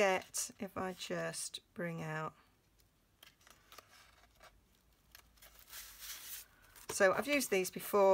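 Sheets of paper rustle and flap as they are leafed through.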